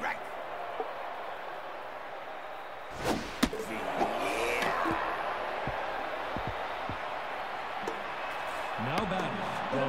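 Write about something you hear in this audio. A stadium crowd murmurs steadily.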